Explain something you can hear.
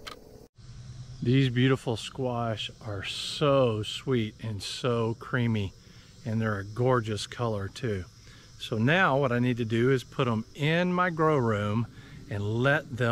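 An older man talks calmly and close by.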